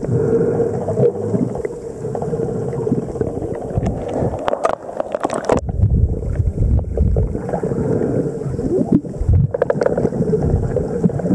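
Water rumbles and churns in a low, steady underwater hush.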